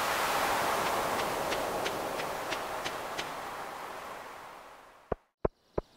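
Waves wash gently on a shore and fade away.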